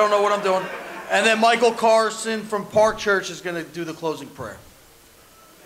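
A man speaks through a microphone in a large echoing room.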